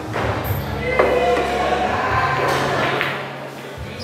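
Pool balls clack together on a table.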